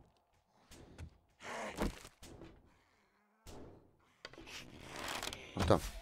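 Footsteps thud on a hollow metal roof.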